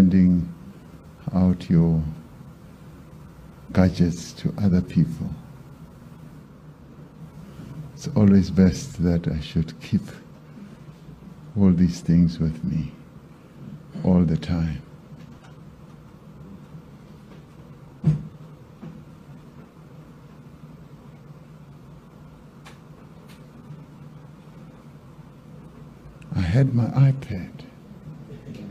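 A man speaks slowly and calmly into a microphone, with long pauses, in a room with a slight echo.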